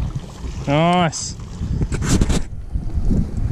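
Water splashes as a fish thrashes in a net.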